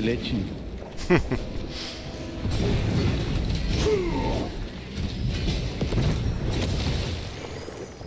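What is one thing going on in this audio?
A sword clashes and slashes in a fight.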